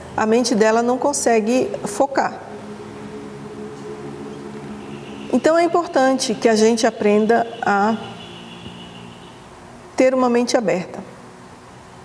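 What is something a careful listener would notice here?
A middle-aged woman speaks calmly and slowly into a close microphone, with long pauses.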